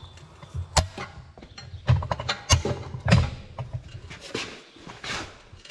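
Rubber squeaks as a tyre bead is levered over a rim.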